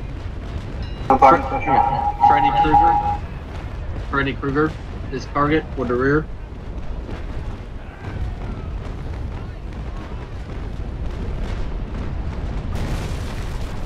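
Cannons boom and rumble across open water.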